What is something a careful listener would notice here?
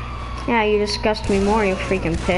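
Gunshots ring out close by.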